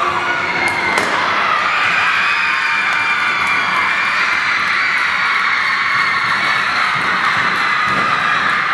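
A large crowd cheers and screams in an echoing hall.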